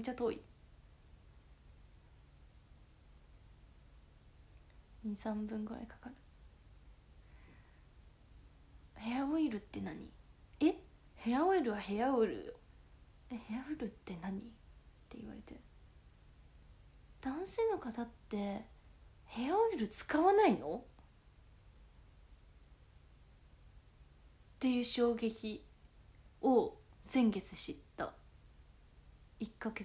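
A young woman talks casually and close by, in short bursts with pauses.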